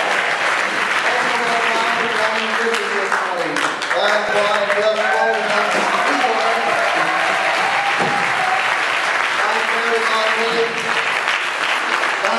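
A large choir sings together in a big echoing hall.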